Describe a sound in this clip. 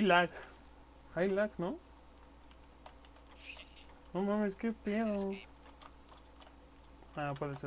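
Stone blocks thud softly as they are placed one after another.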